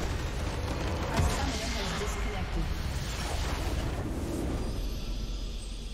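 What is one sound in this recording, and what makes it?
A structure in the game collapses with a loud crashing blast.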